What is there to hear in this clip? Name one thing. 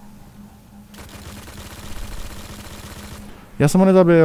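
Heavy machine guns fire in rapid bursts.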